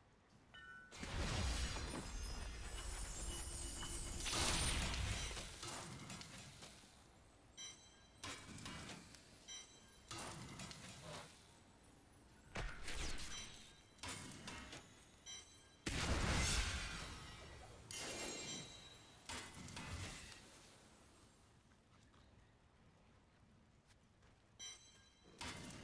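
Short game sound effects clink and whoosh in bursts.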